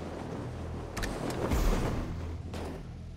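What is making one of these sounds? A car lands with a heavy thud.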